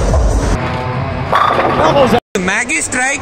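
A bowling ball rolls down a lane with a low rumble.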